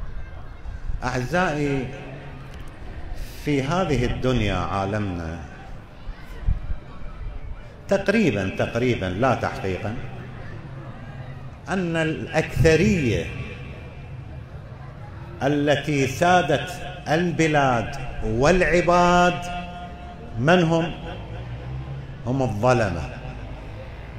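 An elderly man speaks slowly and solemnly through a microphone, in bursts with long pauses, in an echoing hall.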